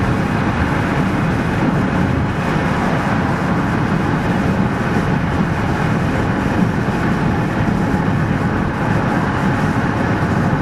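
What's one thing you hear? An elevated train rumbles along its tracks.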